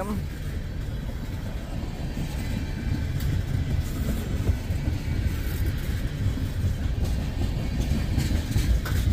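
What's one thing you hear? A freight train rumbles past close by, wheels clattering on the rails.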